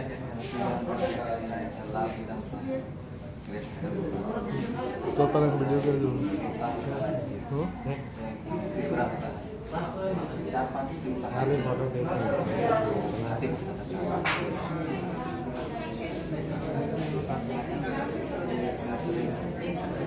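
A young man answers in a calm voice close by.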